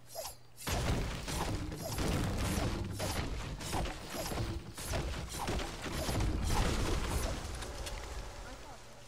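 A pickaxe chops repeatedly at a tree with dull thuds.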